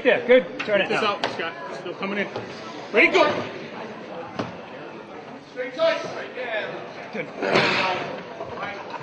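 A man gives loud, animated instructions close by.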